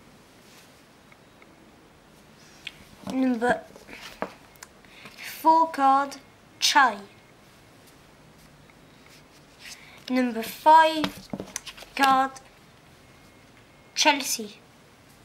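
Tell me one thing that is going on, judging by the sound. Trading cards rustle softly in someone's hands.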